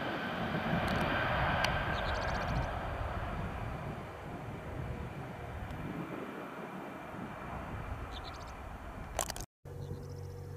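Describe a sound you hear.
Jet engines roar loudly as a large plane takes off, then fade.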